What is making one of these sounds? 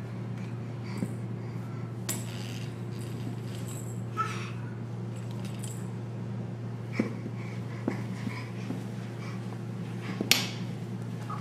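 A small plastic toy clicks and knocks on a floor.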